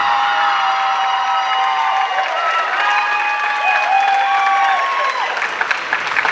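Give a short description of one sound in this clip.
Pop music plays loudly through loudspeakers in a large hall.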